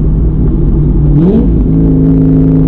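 A car engine revs up sharply during a gear change.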